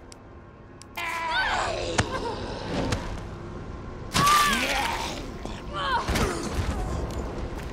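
A young woman grunts and cries out as she struggles.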